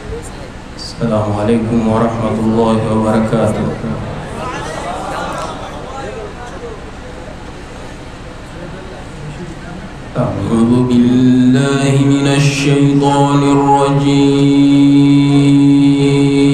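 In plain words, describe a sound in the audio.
A young man chants in a melodic voice through a microphone and loudspeakers.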